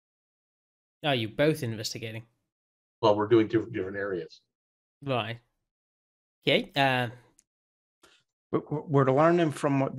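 Men talk with animation over an online call.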